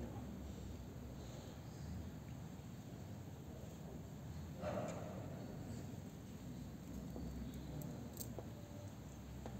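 A seated crowd shifts and rustles softly in a large echoing hall.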